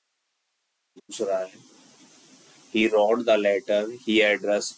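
A young man speaks calmly into a microphone, close by.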